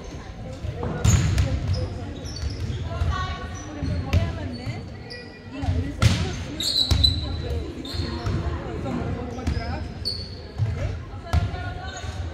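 Volleyballs thump on the court and bounce.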